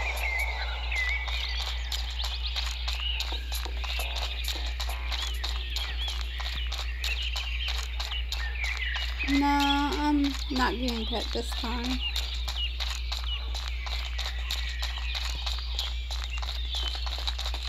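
Footsteps tap quickly on a path.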